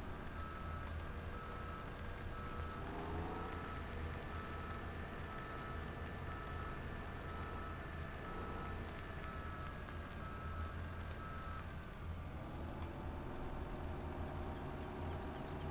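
A heavy diesel engine rumbles and revs steadily.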